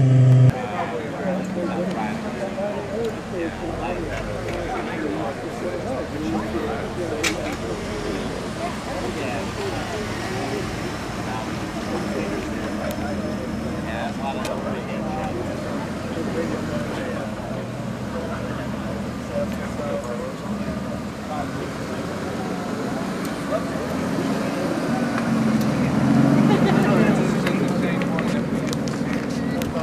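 A crowd of men and women chatter in the background outdoors.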